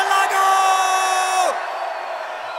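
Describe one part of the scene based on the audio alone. A band plays a loud sustained final chord that suddenly stops.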